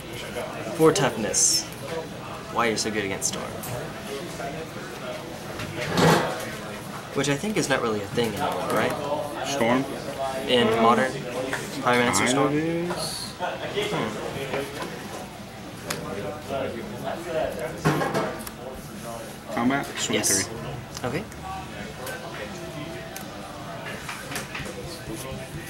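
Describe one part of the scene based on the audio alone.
Playing cards rustle and flick as they are shuffled in hands.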